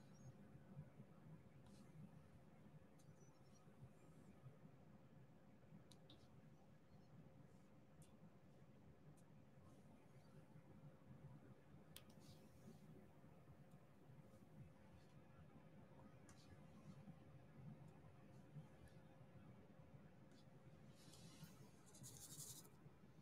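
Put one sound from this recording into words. A pen tip taps and clicks softly on a plastic sheet.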